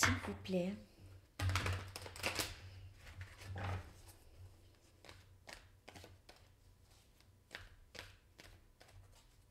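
Playing cards riffle and shuffle with soft flicks and clicks.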